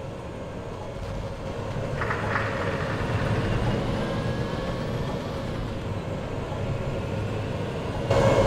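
A tank engine rumbles deeply as the tank drives over rough ground.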